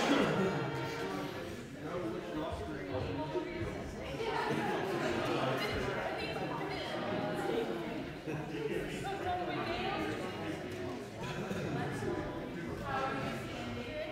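Several men and women chat nearby in a large, echoing room.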